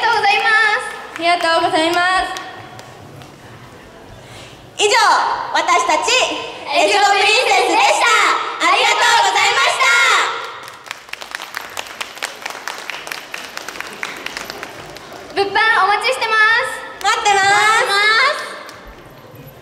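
Several young women speak together with animation through microphones and loudspeakers.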